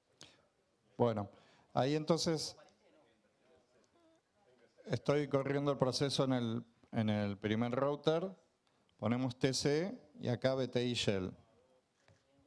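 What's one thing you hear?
A middle-aged man speaks calmly into a microphone, heard through loudspeakers in a large room.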